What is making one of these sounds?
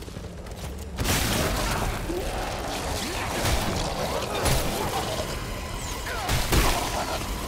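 A creature shrieks and snarls close by.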